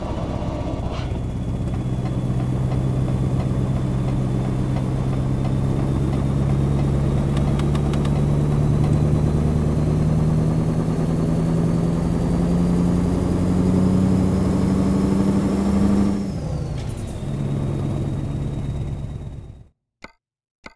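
A truck's diesel engine drones steadily, rising slowly in pitch as it speeds up.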